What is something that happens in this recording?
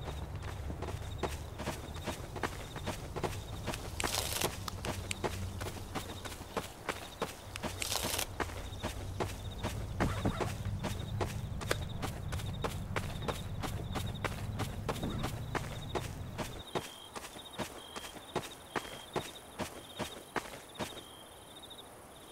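Footsteps tap steadily on hard ground.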